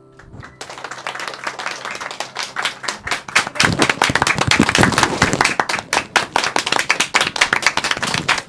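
Several people clap their hands quickly and steadily.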